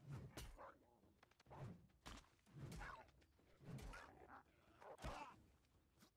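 A heavy hammer strikes with dull thuds.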